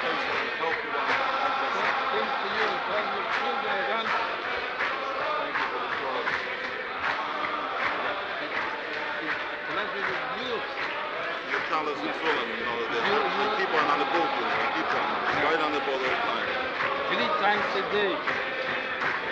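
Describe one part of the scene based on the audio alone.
A large crowd of men sings loudly together in a big echoing hall.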